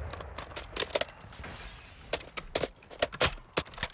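A rifle magazine clicks out and snaps back in.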